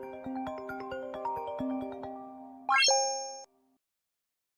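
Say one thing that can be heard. A phone ringtone plays a short melody.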